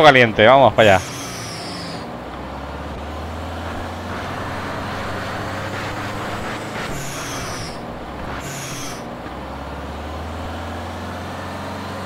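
A bus engine hums steadily as the bus drives.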